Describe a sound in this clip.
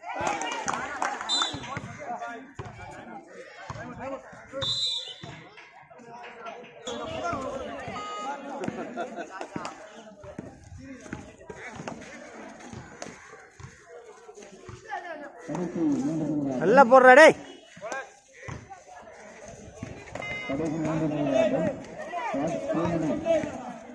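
Players and spectators shout and chant outdoors.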